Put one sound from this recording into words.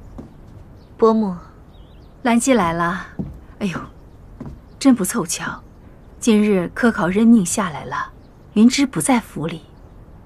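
A middle-aged woman speaks cheerfully and with animation.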